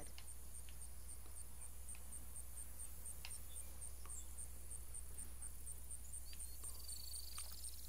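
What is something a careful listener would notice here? Footsteps crunch softly on rough ground.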